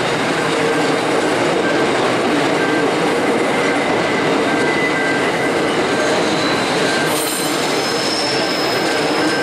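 Empty coal wagons rumble and clatter past over the rails.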